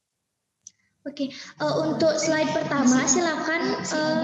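A young woman speaks calmly through a headset microphone over an online call.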